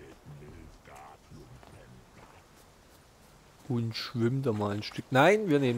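Footsteps run over grass and soft ground.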